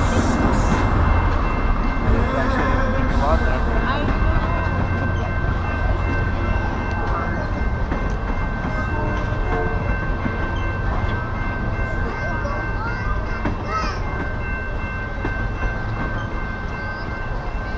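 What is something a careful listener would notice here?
A freight train rumbles steadily past, close by.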